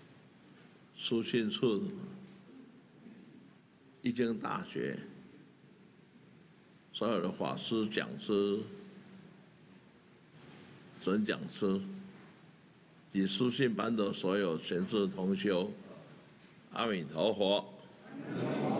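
An elderly man speaks slowly and calmly into a microphone, in short phrases with pauses.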